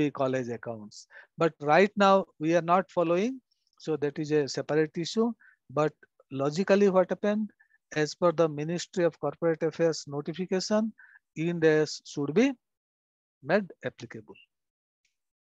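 A man speaks steadily through an online call.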